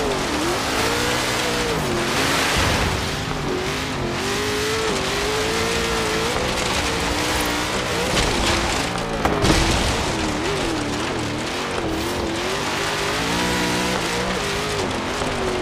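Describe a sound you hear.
A truck engine roars and revs up and down.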